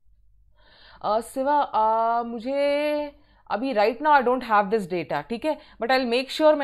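A young woman speaks clearly into a close microphone, explaining at an even pace.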